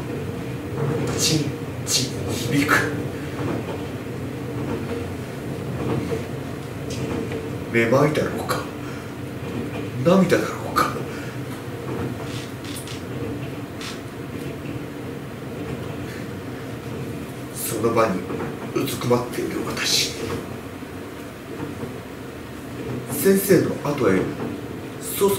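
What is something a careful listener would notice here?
Objects rustle and clink on a hard floor.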